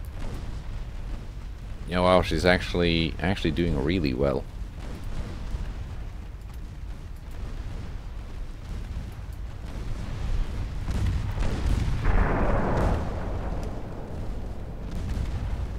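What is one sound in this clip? A low, steady rumble of sea and ship engines runs throughout.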